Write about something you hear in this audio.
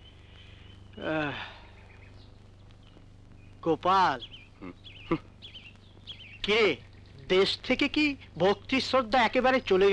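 A middle-aged man speaks loudly and with animation.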